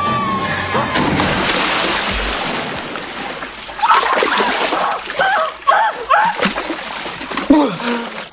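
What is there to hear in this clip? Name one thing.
Water splashes and churns loudly.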